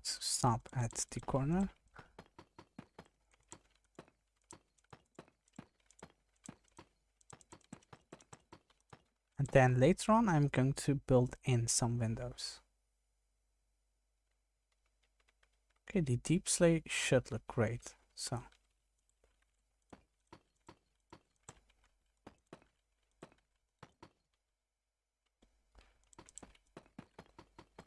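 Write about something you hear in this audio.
Blocks are placed with soft, quick clicks, over and over.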